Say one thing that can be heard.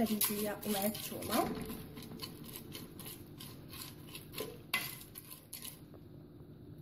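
A spoon scrapes and stirs dry grains in a metal pot.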